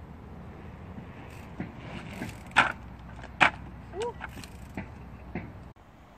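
Bicycle tyres roll over pavement.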